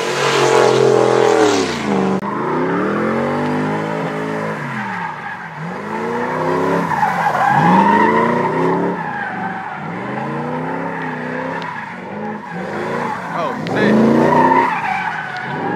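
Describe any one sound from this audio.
A car engine revs hard, rising and falling again and again.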